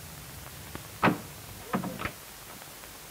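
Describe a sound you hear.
A door shuts with a solid knock.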